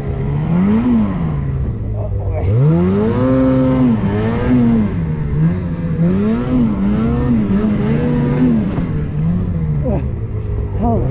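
A snowmobile engine revs up and down close by.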